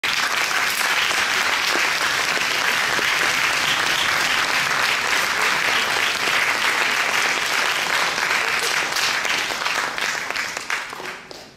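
An audience applauds loudly in a large hall, fading out at the end.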